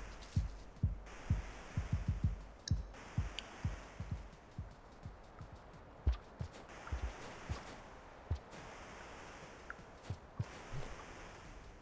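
Deep thuds of a creature fighting thump again and again.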